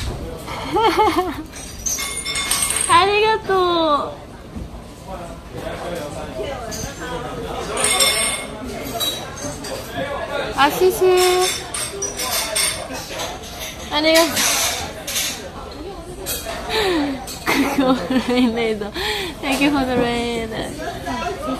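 A young woman giggles close to a microphone.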